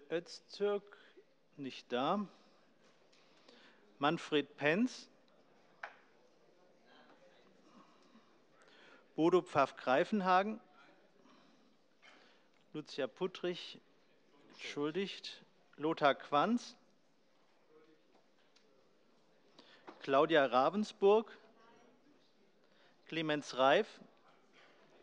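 A middle-aged man speaks calmly into a microphone in short bursts, with pauses between phrases.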